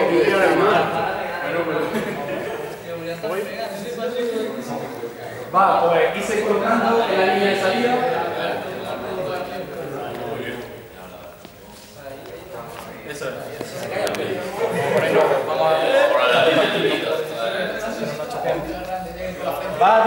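Young men talk and laugh in a large echoing hall.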